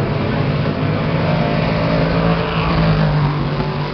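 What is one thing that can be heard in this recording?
A race car roars past up close.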